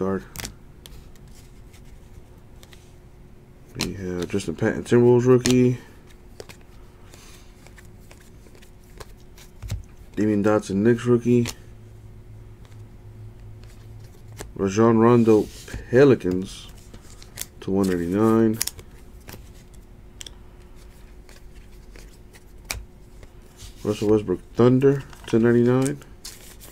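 Trading cards rustle and slide against each other as they are shuffled by hand.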